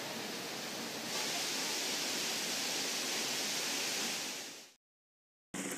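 A shallow stream rushes over rocks.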